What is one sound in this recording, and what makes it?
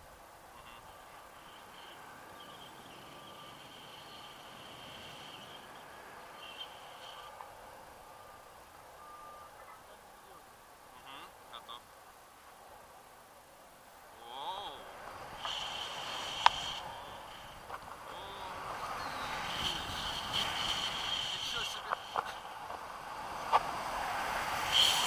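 Wind rushes past in flight under a paraglider, gusting stronger toward the end.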